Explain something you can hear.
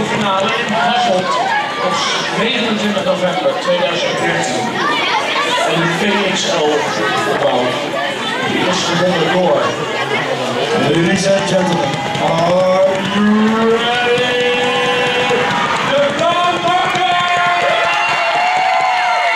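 A crowd of children chatters and cheers loudly.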